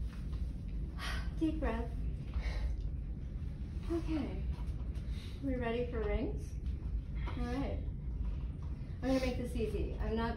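A young woman speaks softly and with feeling, close by.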